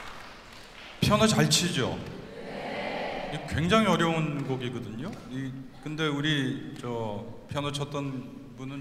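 A man speaks calmly into a microphone, heard through loudspeakers in a large echoing hall.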